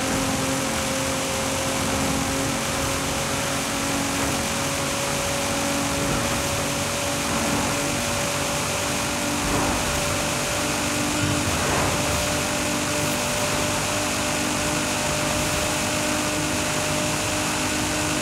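Tyres hiss over the road at speed.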